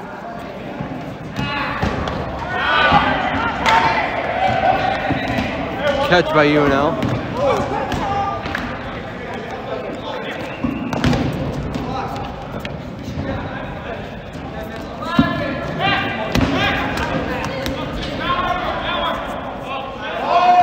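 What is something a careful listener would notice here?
Sneakers squeak on the hard floor.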